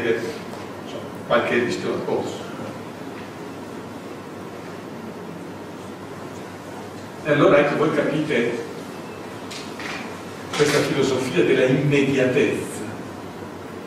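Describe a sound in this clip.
A middle-aged man speaks calmly into a microphone, with pauses, in a room with a slight echo.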